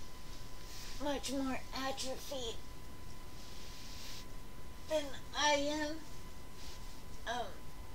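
A young woman speaks close by in a high, playful voice.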